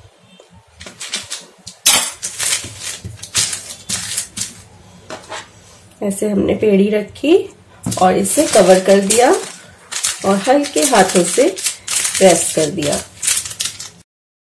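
A plastic sheet crinkles under hands.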